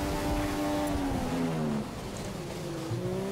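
A racing car engine drops in pitch as the car brakes hard.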